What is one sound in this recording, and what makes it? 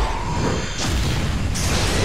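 Fiery explosions boom and crackle.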